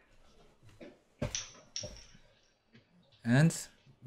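A chess piece clicks down on a wooden board.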